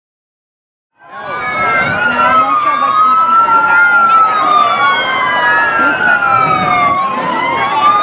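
Several sirens wail loudly nearby, rising and falling over one another.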